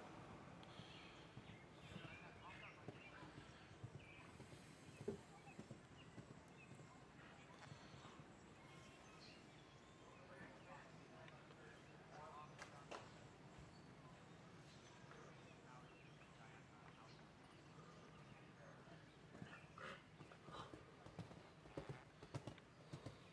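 Hooves thud on soft ground as a horse canters.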